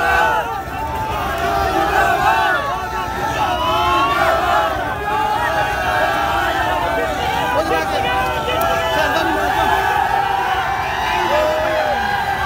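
A large crowd outdoors chants and cheers loudly.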